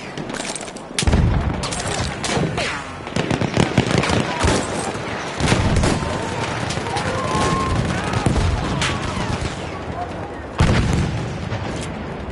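Explosions boom nearby with deep rumbling blasts.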